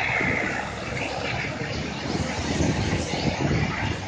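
Motorbikes buzz past on the road.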